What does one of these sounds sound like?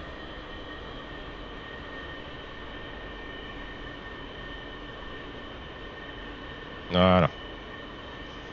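A jet engine whines steadily.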